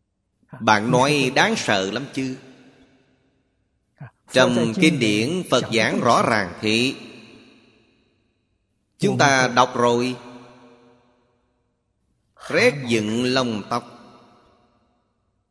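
An elderly man speaks calmly into a close microphone, in short phrases with pauses.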